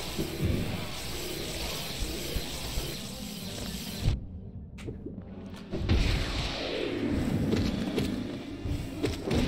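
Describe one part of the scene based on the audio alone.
Magical blasts burst and crackle in quick bursts.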